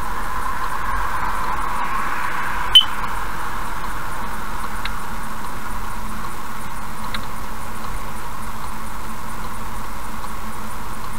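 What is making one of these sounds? Road noise from a car's tyres hums steadily as the car drives along a highway.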